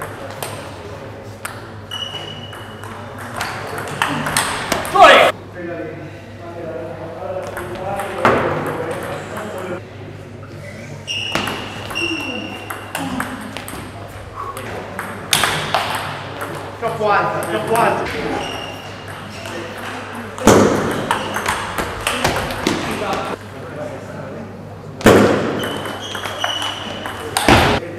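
A table tennis ball clicks back and forth across a table and off paddles.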